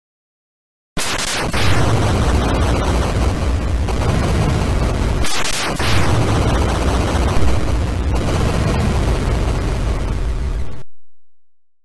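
Cheerful electronic video game music plays.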